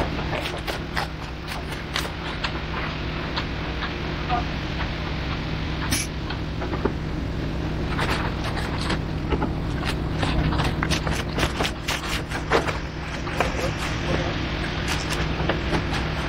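Boots crunch and tap on steel mesh.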